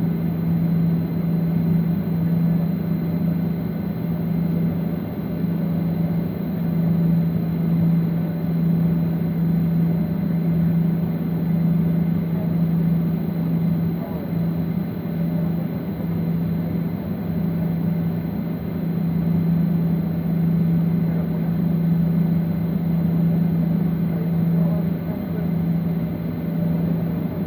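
An aircraft engine hums in a steady low drone, heard from inside the cabin.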